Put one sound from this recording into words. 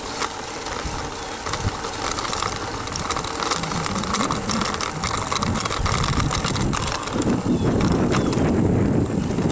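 Bicycle tyres hum on asphalt.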